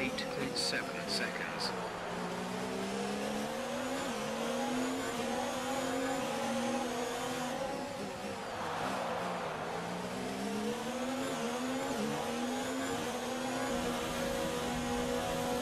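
A racing car engine whines loudly, rising and falling in pitch as it speeds up and brakes.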